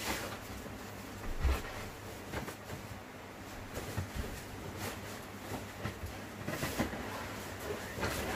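A sheet rustles and flaps as it is spread over a mattress.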